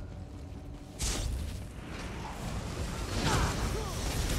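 Magic spells crackle and blast in a fight.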